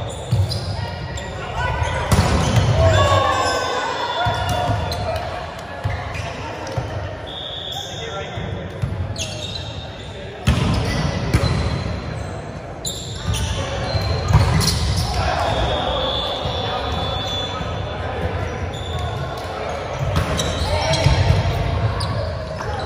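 A volleyball thumps off players' arms and hands.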